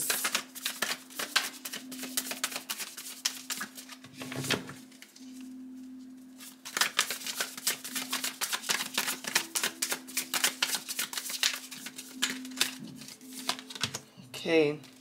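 Playing cards riffle and flick rapidly as a deck is shuffled.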